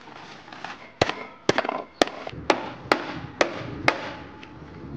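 A knife chops on a board in sharp knocks.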